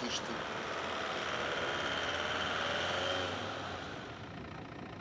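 A van engine hums as the van drives over a snowy road.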